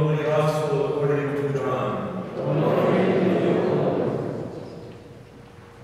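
An older man sings a chant through a microphone in a large echoing hall.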